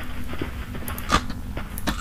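Electronic static crackles and hisses.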